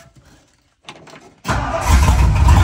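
An old engine starts up.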